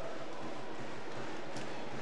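A volleyball is struck hard by a hand.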